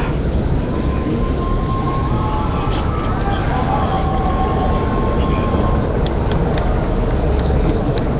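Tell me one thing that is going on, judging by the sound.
A crowd shouts and chatters loudly outdoors at close range.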